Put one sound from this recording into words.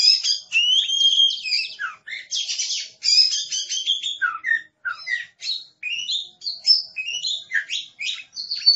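A songbird sings a loud, varied song of sweet whistles and chirps close by.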